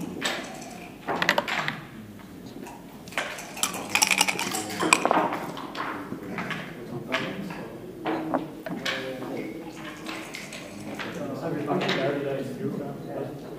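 Plastic game pieces click as they slide and tap on a wooden board.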